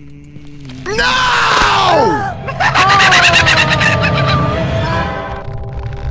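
A young man shouts and screams loudly into a microphone.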